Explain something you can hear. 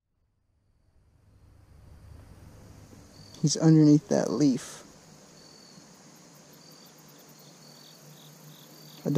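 Shallow water trickles gently over stones.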